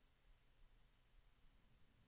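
Scissors snip through thin foil tape.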